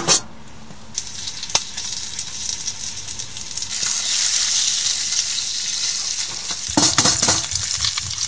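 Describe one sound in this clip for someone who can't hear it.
Meat sizzles and hisses in a hot pot.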